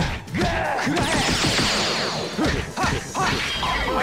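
Energy blasts crackle and whoosh during the fight.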